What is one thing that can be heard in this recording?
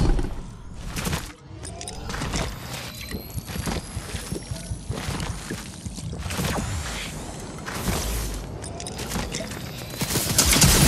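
Footsteps patter quickly over grass and dirt.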